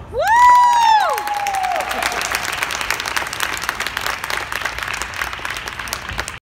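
An audience claps and cheers in a large echoing hall.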